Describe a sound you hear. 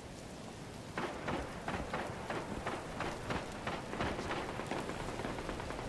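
A rifle fires a rapid series of sharp shots.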